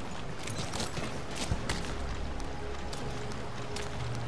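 Footsteps thud as a soldier runs and climbs.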